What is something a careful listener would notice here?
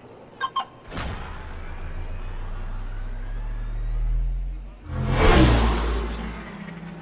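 A flying vehicle whooshes past with a rising roar.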